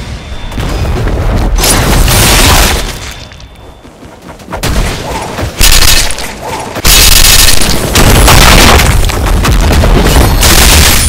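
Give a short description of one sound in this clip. Sword slashes whoosh and strike in bursts of game combat.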